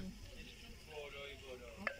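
Water pours into a glass teapot.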